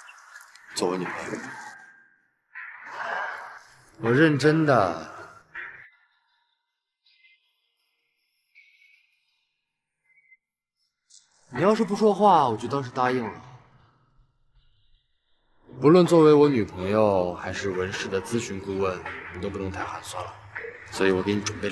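A young man speaks earnestly at close range.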